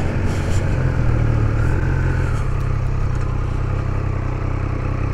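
A motorcycle engine rumbles steadily close by, easing off as the bike turns.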